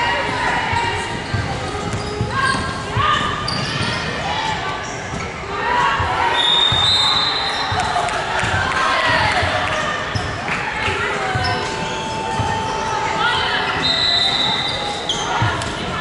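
Young female players call out to each other across an echoing hall.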